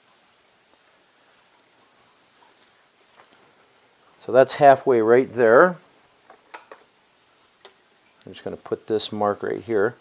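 Cloth strips rustle and slide across a surface.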